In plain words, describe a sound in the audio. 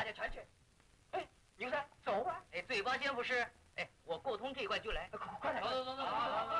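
A second man answers, close by.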